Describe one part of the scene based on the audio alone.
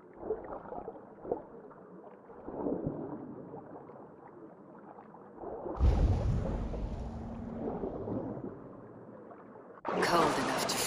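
Water bubbles and churns, heard muffled as if from underwater.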